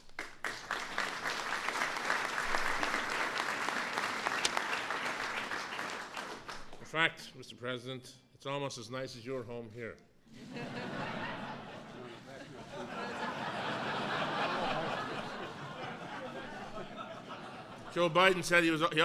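A crowd applauds and cheers in a large room.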